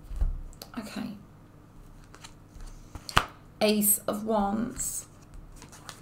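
A card slides and taps softly onto a cloth-covered table.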